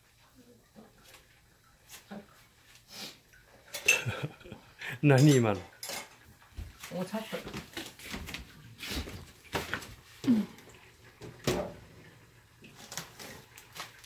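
Dishes and utensils clink and knock.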